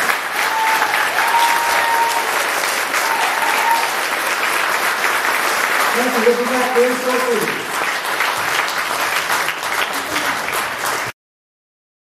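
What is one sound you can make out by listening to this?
A large audience applauds and cheers in a big hall.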